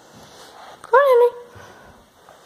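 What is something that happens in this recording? A small dog yelps once, loud and close.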